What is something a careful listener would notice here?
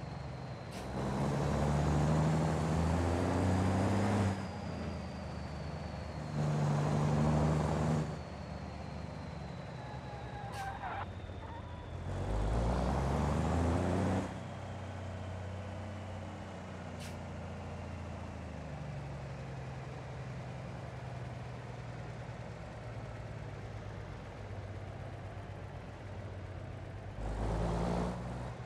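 A diesel truck engine revs hard in loud bursts.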